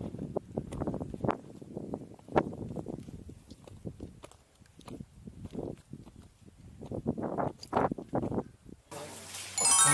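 Footsteps crunch on a rocky trail.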